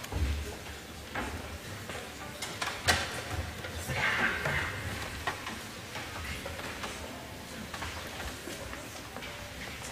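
Footsteps and chairs shuffle and knock on a wooden stage in a large hall.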